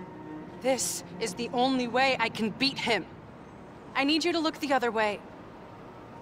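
A young woman speaks pleadingly, close up.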